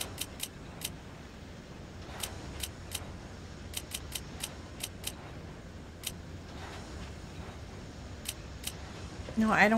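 Short clicks tick as items are selected in a game menu.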